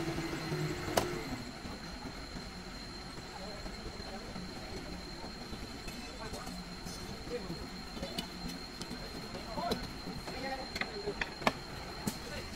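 Wooden beams knock together with sharp clacks.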